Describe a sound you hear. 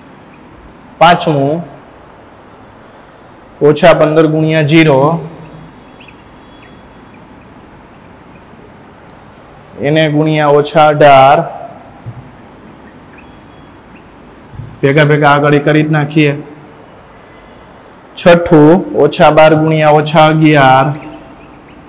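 A man speaks calmly and clearly into a microphone, in short phrases with pauses.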